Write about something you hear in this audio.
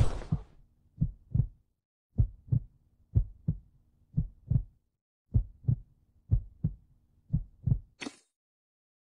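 A countdown ticks with short, even beats.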